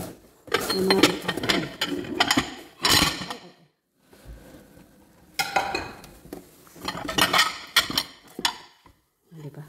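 Ceramic plates clatter and clink as they are stacked.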